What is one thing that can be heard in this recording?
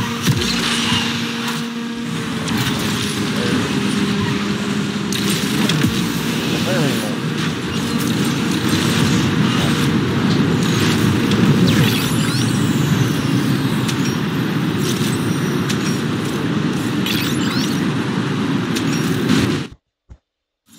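A racing car engine roars loudly at high speed.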